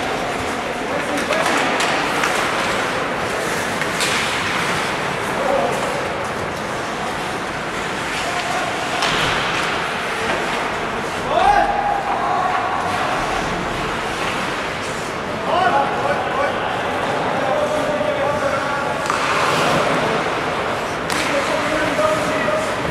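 Skates scrape and hiss across the ice in an echoing rink.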